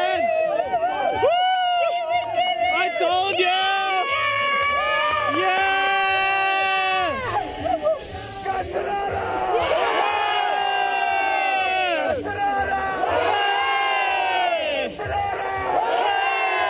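A large crowd cheers and sings loudly outdoors.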